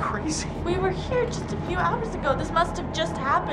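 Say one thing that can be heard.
A young woman speaks anxiously and quickly nearby.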